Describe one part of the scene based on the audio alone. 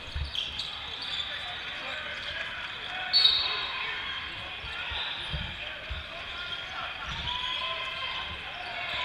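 Sneakers squeak on a court in a large echoing hall.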